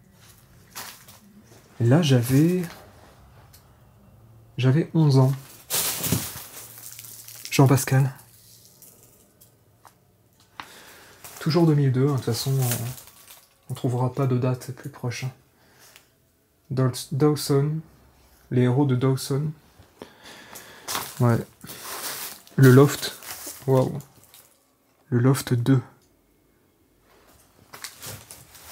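Paper magazines rustle as they are picked up.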